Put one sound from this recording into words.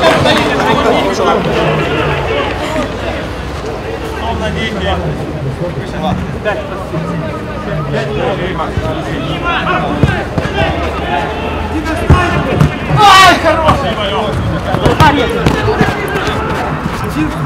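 Men shout and call out to each other across an open outdoor pitch.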